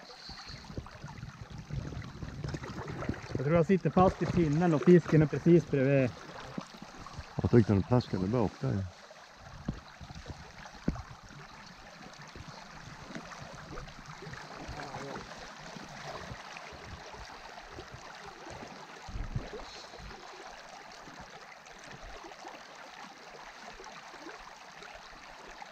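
A river flows and babbles steadily.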